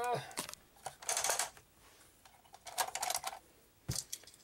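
A small toy car rattles and whirs down a plastic track.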